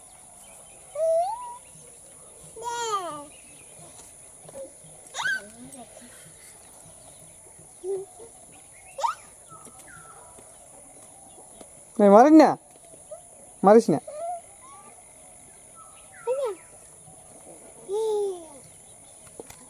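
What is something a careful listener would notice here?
A small child babbles and squeals close by.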